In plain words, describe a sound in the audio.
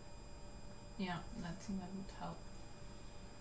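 A young woman speaks briefly and casually into a close microphone.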